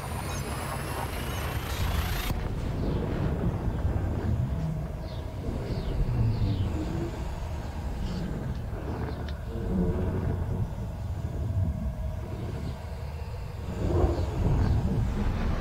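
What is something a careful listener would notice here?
A deep spaceship engine rumbles steadily.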